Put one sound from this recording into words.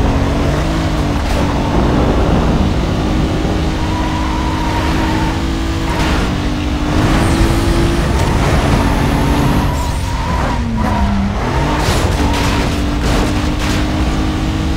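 A racing car engine roars steadily at high speed, its pitch shifting with gear changes.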